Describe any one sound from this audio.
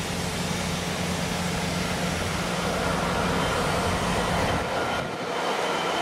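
A diesel locomotive engine rumbles with a low, steady drone.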